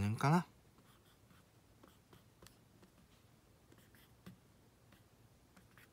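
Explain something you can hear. A marker squeaks and taps faintly on a whiteboard.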